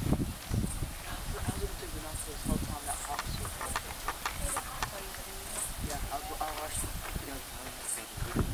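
People talk quietly nearby, outdoors.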